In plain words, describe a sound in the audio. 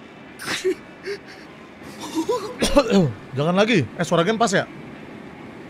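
A man pleads weakly in a pained, breathless voice.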